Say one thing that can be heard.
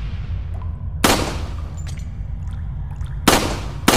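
A pistol fires sharp shots that echo.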